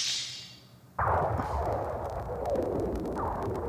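A loud blast roars and rumbles.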